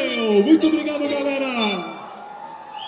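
A band plays loud live music.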